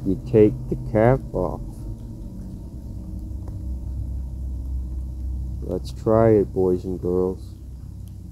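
A man calls out close by in a high, wavering voice.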